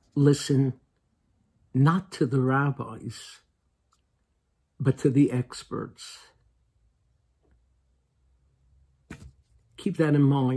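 A middle-aged man speaks calmly in short bursts, close to the microphone, as if on an online call.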